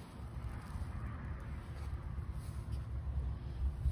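A hand scrapes and rustles through loose soil.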